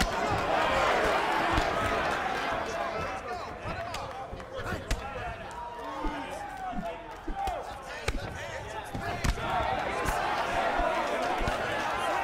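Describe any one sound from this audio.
A crowd cheers loudly in a large arena.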